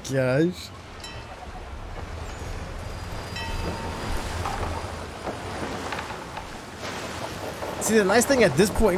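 Sea waves wash against a sailing ship's hull.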